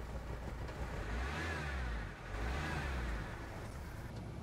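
A van engine revs up twice and settles back.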